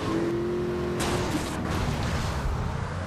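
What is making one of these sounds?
A car crashes into another car with a loud thud.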